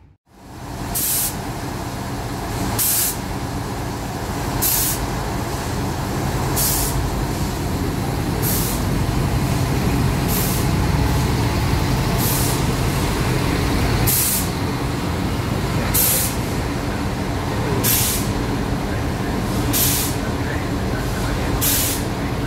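Train wheels clack over rail joints in a slow, steady beat.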